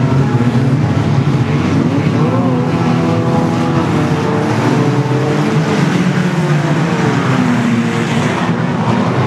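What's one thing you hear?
Tyres screech as cars spin.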